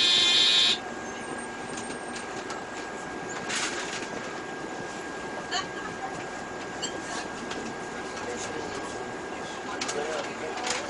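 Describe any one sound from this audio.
A city bus drives along a street, heard from inside.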